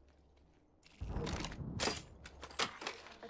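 A weapon clatters as it is picked up.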